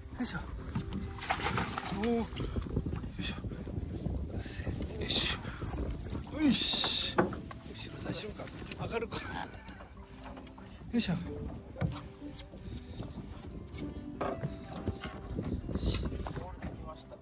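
Waves lap against a small boat's hull.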